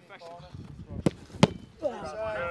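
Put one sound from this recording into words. A football is kicked hard with a sharp thud.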